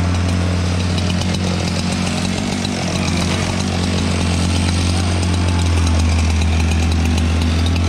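A chainsaw idles close by.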